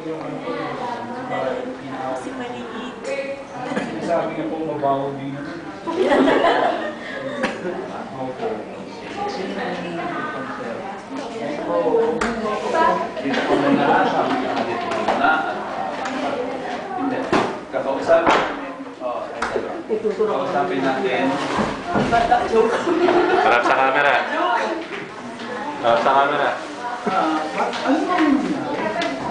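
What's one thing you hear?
A group of young adults talk with one another indoors.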